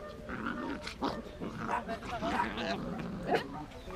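Two dogs scuffle and rustle in the grass.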